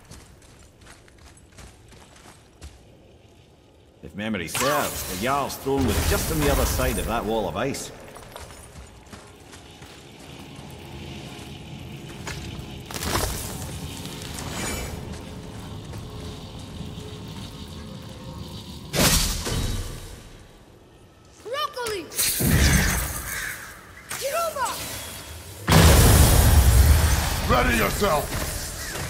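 Heavy footsteps crunch on icy ground.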